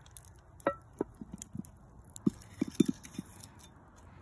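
Split firewood knocks and clatters as it is stacked.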